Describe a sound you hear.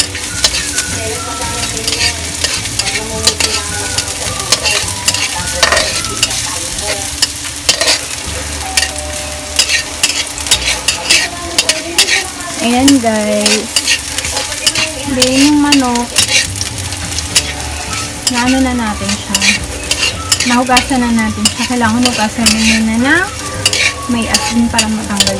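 Food sizzles in hot oil.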